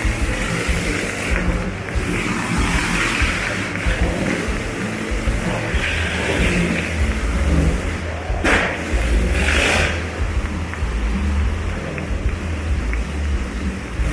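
Motorcycle engines roar loudly as they race round and round in a circle.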